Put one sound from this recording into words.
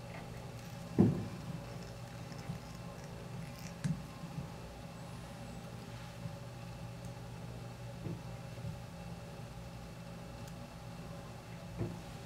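Fingers handle a small tool with soft taps and rustles.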